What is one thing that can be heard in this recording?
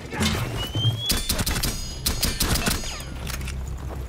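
Gunshots fire in rapid bursts, close by.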